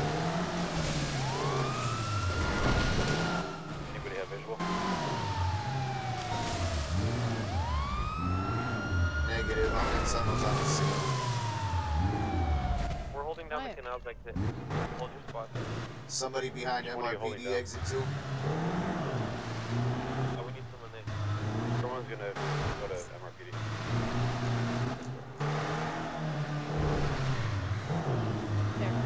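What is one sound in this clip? Tyres screech as a car slides sideways.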